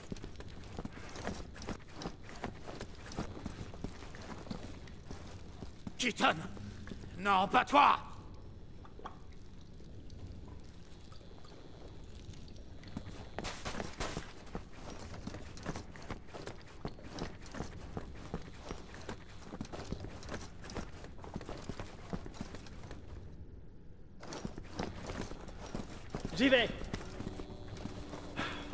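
Boots thud quickly on a hard floor.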